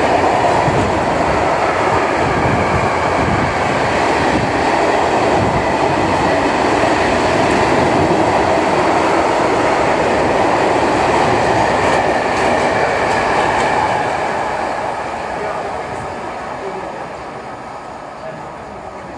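A freight train rumbles and clatters loudly past up close, then fades away.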